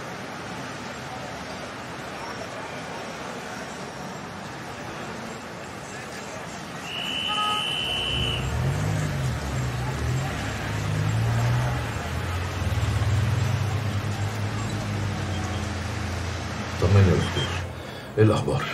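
Car engines hum and tyres roll past on a street.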